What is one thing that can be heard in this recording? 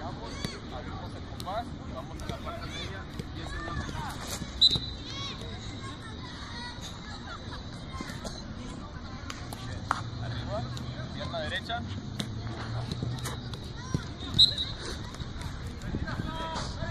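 Several young people chatter and call out across an open outdoor field.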